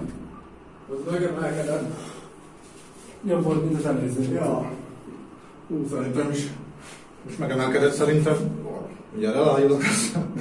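A man speaks breathlessly and loudly, close by.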